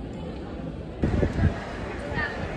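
A crowd of people murmurs and chatters outdoors.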